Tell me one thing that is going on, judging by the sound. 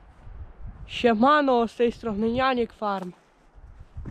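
A teenage boy speaks with animation close to the microphone.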